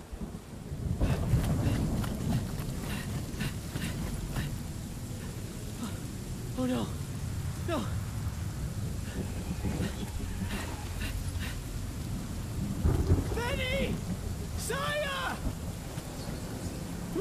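Heavy rain pours down steadily outdoors.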